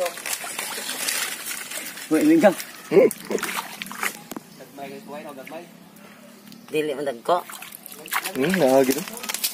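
Muddy water sloshes and splashes around hands.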